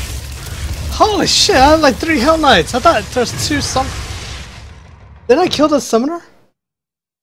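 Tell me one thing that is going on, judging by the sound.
A monster snarls and roars.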